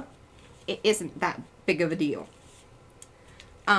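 Paper rustles as it is folded and smoothed by hand.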